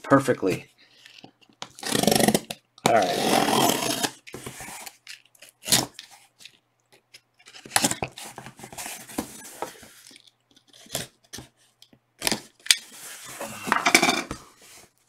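A blade slices through packing tape on a cardboard box in quick scratchy strokes.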